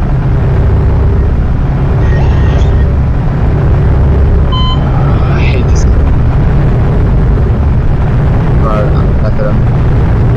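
Fuel gurgles steadily from a pump nozzle into a car's tank.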